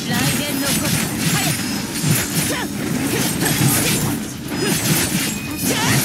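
Electric crackling bursts ring out.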